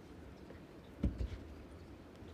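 A bowl thuds onto a carpeted rink.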